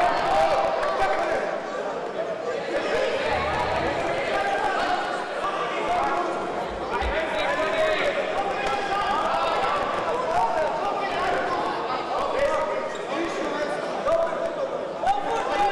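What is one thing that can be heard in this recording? A man calls out short commands in a loud voice in an echoing hall.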